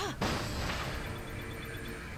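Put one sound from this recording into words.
A crate smashes apart with a sharp crack.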